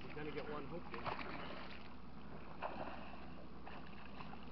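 A fish splashes and thrashes at the surface of the water.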